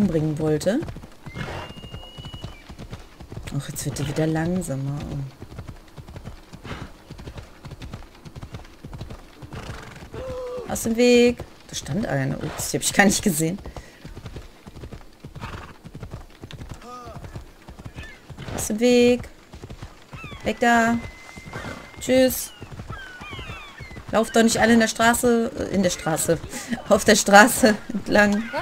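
Horse hooves clop steadily at a gallop on a dirt path.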